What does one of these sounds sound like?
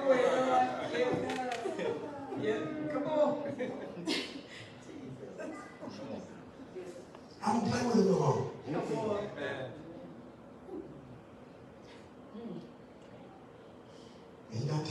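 A man speaks with animation through a microphone in a large room.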